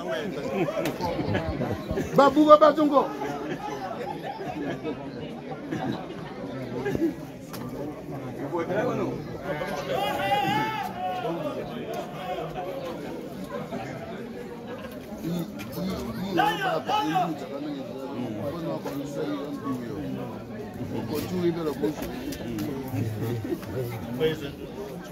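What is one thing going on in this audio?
Several men talk nearby, outdoors.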